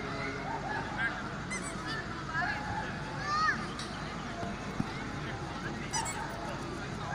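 People in a crowd whistle and shout.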